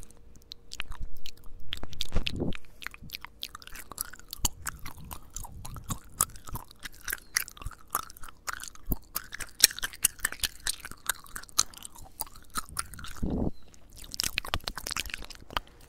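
Wet mouth clicks and smacks sound very close to a microphone.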